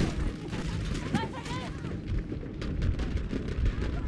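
Flames roar and crackle close by.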